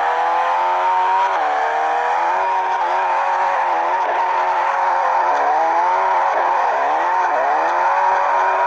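A car engine roars loudly, revving up and down as gears shift.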